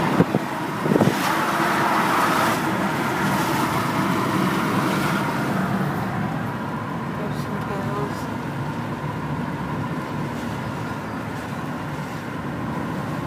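Tyres roll on the road with a steady rushing noise.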